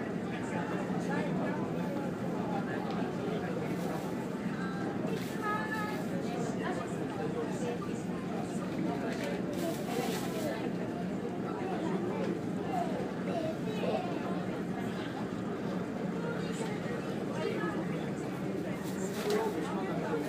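Waves slosh and splash against a moving boat.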